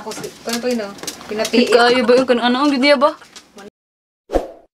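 A young woman talks animatedly, close by.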